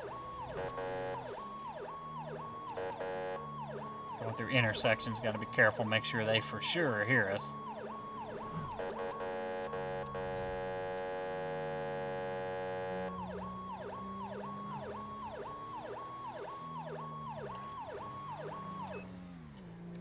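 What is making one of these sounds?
A police siren yelps rapidly.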